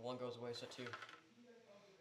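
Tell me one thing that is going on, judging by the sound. A hand slides a card across a table.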